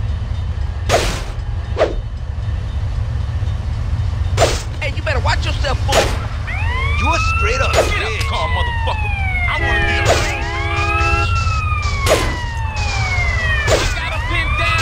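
A baseball bat strikes with heavy thuds.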